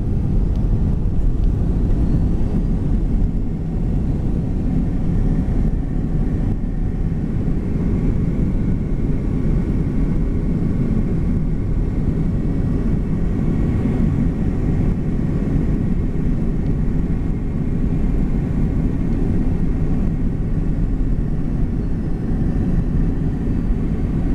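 Aircraft wheels rumble over a runway.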